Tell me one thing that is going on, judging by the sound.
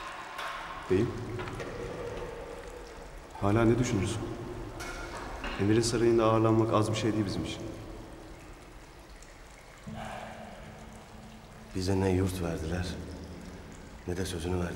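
A man speaks in a low, tense voice close by.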